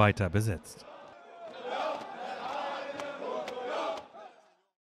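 A large crowd chants together in a hall with echo.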